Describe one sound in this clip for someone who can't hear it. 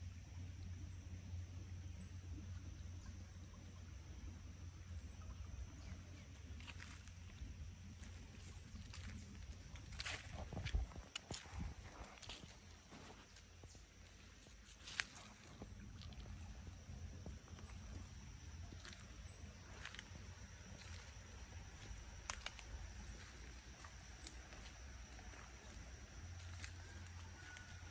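A shallow stream trickles softly.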